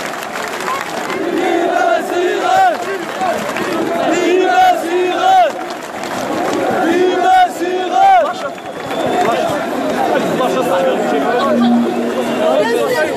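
A large crowd of men chants loudly in rhythm nearby.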